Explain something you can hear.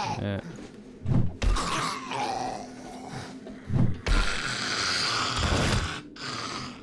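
Heavy blows thud into a body.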